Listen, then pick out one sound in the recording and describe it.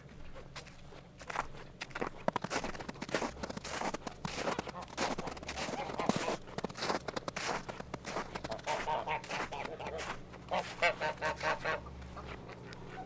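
Footsteps crunch on frozen snow and dirt.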